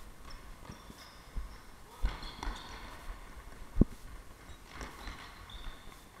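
Shoes squeak sharply on a hard floor in a large echoing hall.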